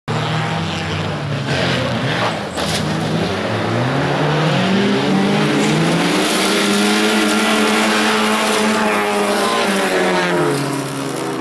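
Several racing car engines roar and rev loudly, drawing closer.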